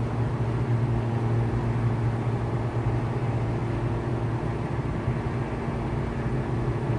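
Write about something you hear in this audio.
A small propeller plane's engine drones steadily from inside the cockpit.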